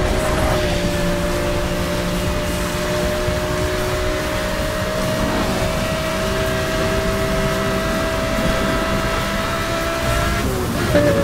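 Wind and tyres rush loudly on a wet road.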